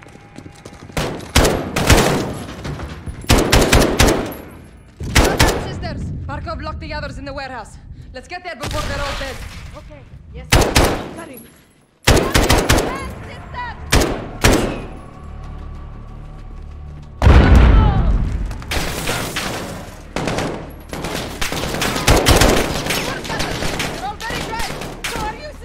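A rifle fires loud bursts of shots that echo in a large hall.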